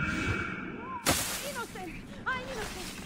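A body lands with a rustling thud in a pile of hay.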